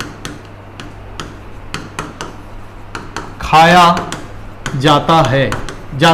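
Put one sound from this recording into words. A marker taps and squeaks on a writing board.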